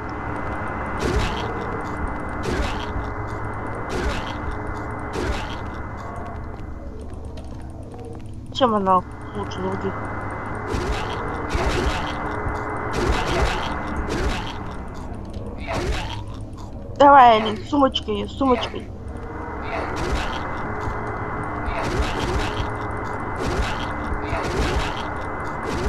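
Heavy blows land with dull, repeated thuds.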